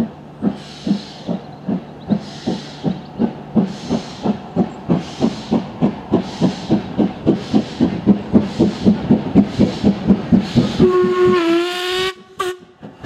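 A steam locomotive chuffs rhythmically as it approaches and passes close by.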